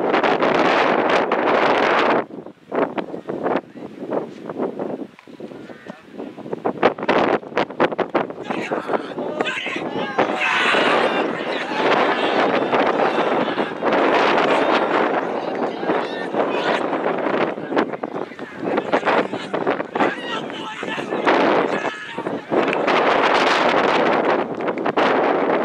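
Wind buffets the microphone in gusts outdoors.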